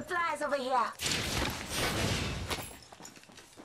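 Heavy metal doors slide open with a whoosh.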